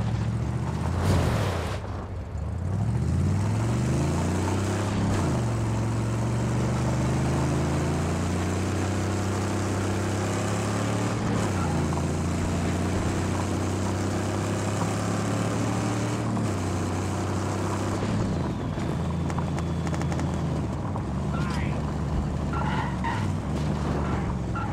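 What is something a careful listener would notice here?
Tyres crunch and hiss over loose sand and gravel.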